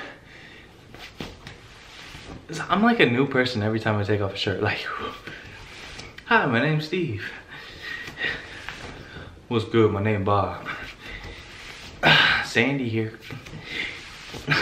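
Fabric rustles as a young man pulls off a shirt.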